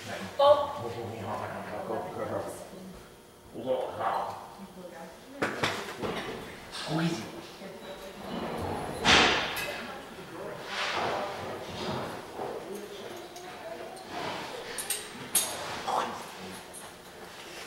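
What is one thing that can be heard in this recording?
A man talks to a dog.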